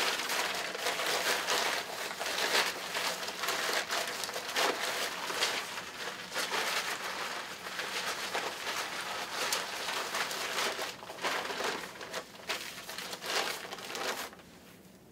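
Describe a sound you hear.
Fabric rustles and crinkles close by as a hood is pulled on and adjusted.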